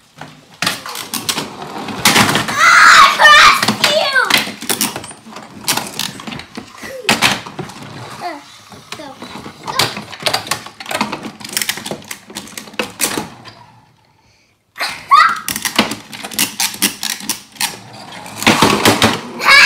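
Plastic toy cars clatter and roll on a wooden table.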